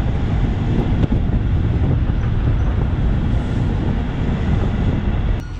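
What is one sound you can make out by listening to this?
A truck rumbles along a road.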